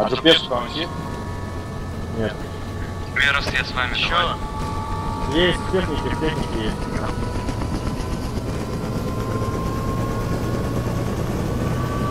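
Helicopter rotor blades thump steadily.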